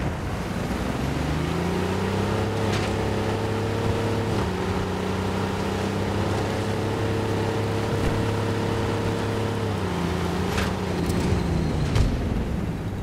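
A tank engine roars and whines as it drives.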